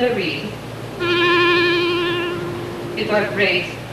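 A clarinet plays a short, steady note.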